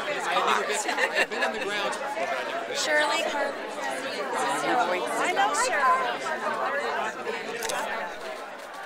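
A crowd of men and women chatter and laugh nearby outdoors.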